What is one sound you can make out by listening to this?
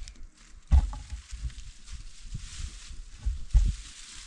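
Leaves rustle and stalks thud as plants are pulled up nearby.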